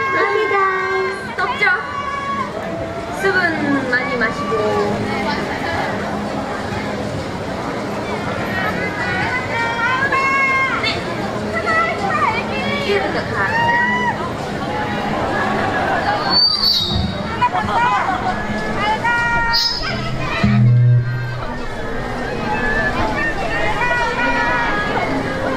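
Young women talk and laugh into microphones through a loudspeaker outdoors.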